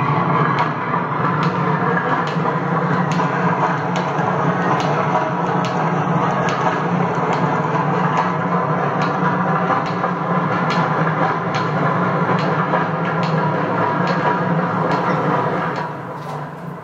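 Old mill machinery runs with a steady loud hum and rattle.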